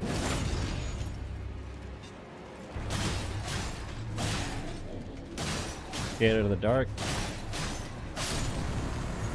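Heavy blows and sword strikes clash in quick bursts.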